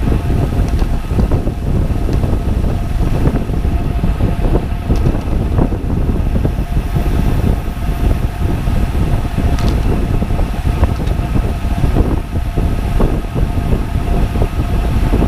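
Bicycle tyres hum steadily on a paved road.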